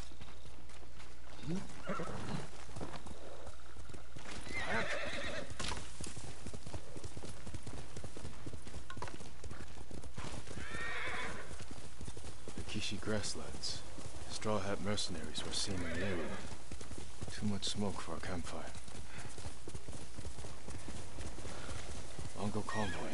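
A horse gallops with thudding hooves.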